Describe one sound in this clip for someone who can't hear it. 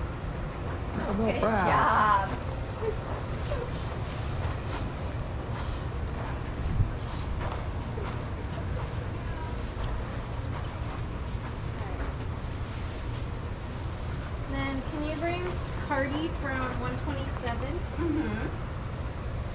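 Dogs whine and yelp nearby.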